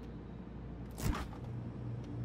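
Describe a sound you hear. A fridge door clicks open.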